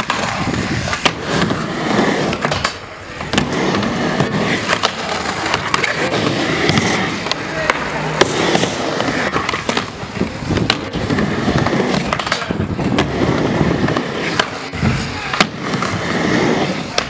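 Skateboard wheels roll and rumble over a wooden ramp.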